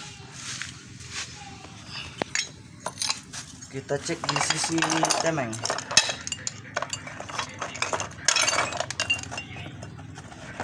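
Metal engine parts clink and clatter as they are handled.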